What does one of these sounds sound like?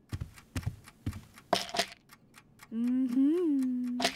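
A plastic pill bottle is set down on a wooden table.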